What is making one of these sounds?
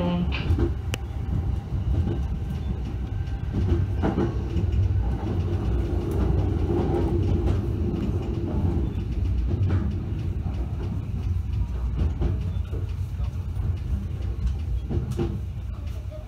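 Train wheels click and clunk over rail joints.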